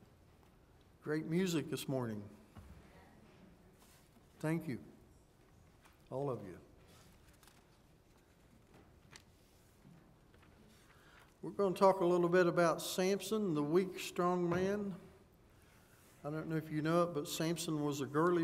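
An elderly man speaks slowly into a microphone in a reverberant hall, with long pauses.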